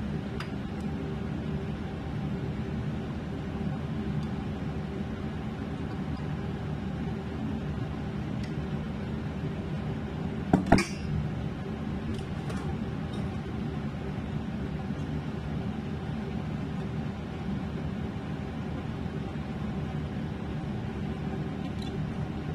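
A glass bottle clinks as sauce is poured.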